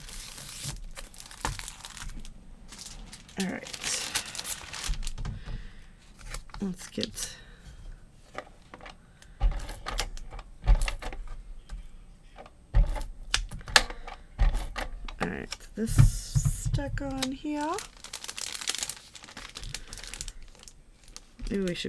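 Paper slides and taps on a hard surface.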